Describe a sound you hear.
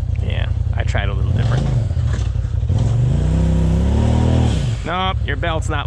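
An off-road vehicle's engine revs up and down as it climbs over rocks.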